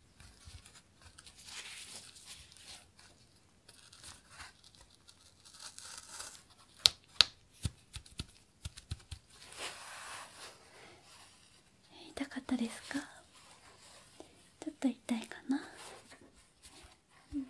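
Latex gloves crinkle and squeak close by.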